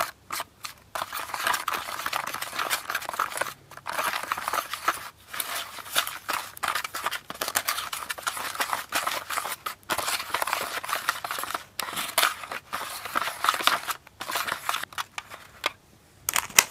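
A plastic spoon scrapes and stirs thick cream in a plastic tray.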